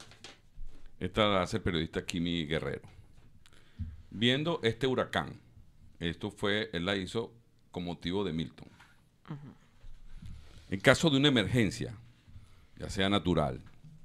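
A middle-aged man speaks with animation into a close microphone.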